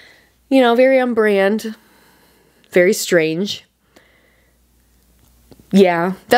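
A young woman speaks close to a microphone with animation, in short bursts.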